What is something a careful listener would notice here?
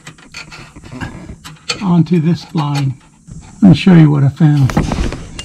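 A metal tool scrapes against metal parts.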